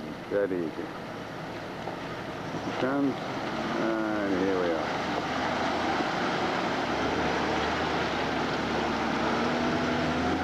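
A vehicle engine rumbles as it drives through shallow water.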